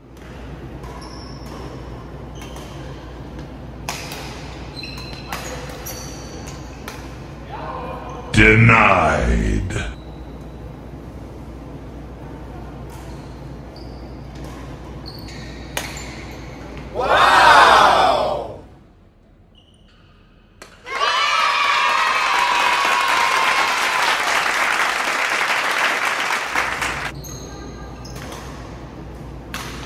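Rackets strike a shuttlecock in sharp, echoing smacks in a large hall.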